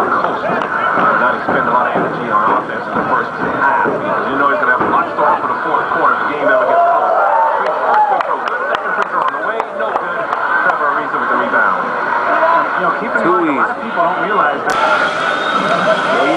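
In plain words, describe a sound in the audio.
A large crowd of men and women chatters and shouts outdoors.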